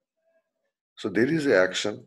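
A man speaks calmly through a microphone over an online call.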